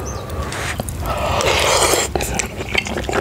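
A man slurps noodles.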